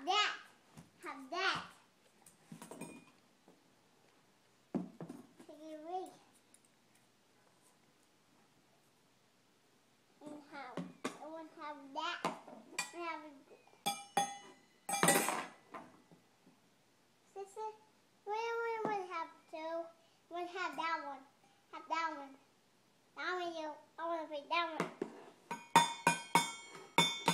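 Metal cans clink and rattle as small hands bang them.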